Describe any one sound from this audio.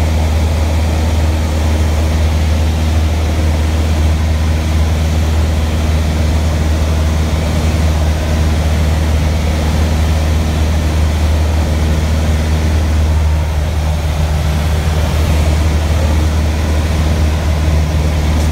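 A small propeller plane's engine drones loudly and steadily from inside the cabin.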